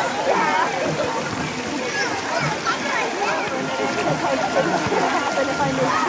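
Water splashes and laps as people move through it.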